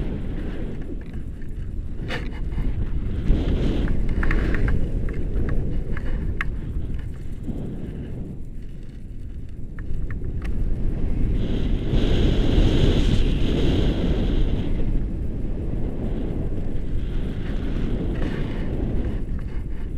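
Wind rushes and buffets the microphone in flight under a paraglider.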